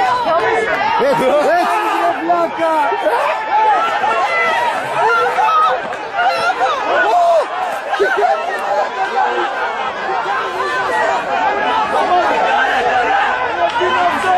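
Several men shout and argue excitedly outdoors.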